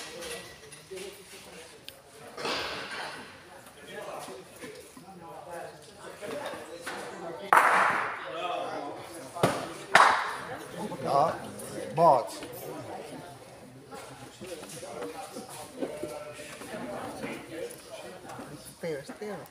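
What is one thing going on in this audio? Spectators chat and murmur.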